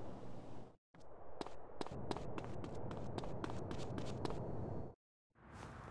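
Footsteps patter on pavement outdoors.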